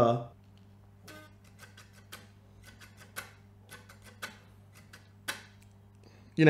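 Guitar strings are softly picked and muted with faint clicks.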